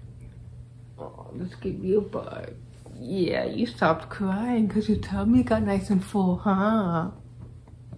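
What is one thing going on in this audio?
A woman talks softly and playfully, close by.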